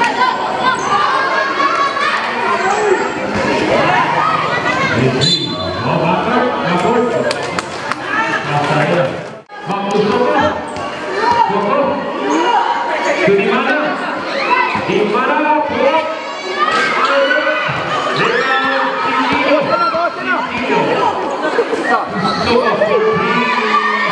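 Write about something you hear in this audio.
A crowd of young people cheers and shouts loudly outdoors.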